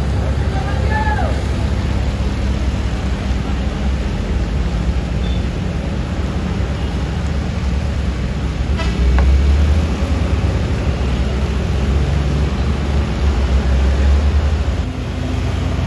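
Car and truck engines rumble as they climb a steep road.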